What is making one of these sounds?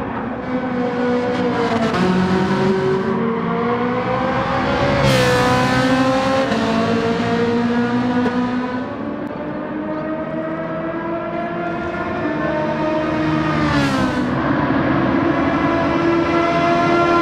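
A racing car engine roars loudly, its pitch rising and falling as it shifts gears.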